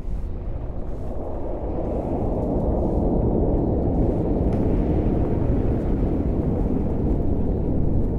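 Huge hovering machines give off a deep, steady rumbling hum.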